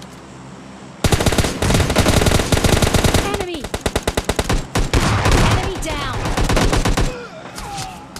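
Automatic rifle gunfire rattles in rapid bursts.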